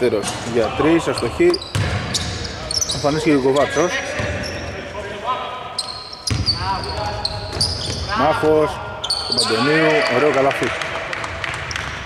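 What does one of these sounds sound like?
Young men shout to each other across a large echoing arena.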